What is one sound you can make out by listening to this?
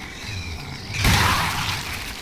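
A shotgun fires with a loud boom.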